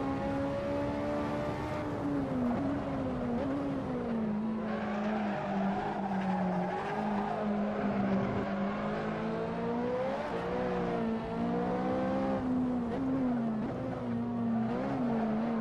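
A racing car engine roars, rising and falling in pitch.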